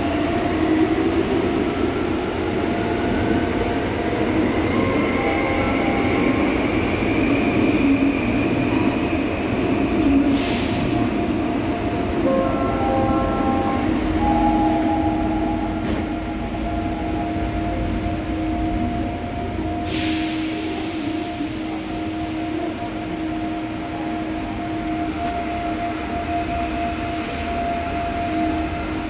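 A subway train rumbles and whines steadily as it runs along the track.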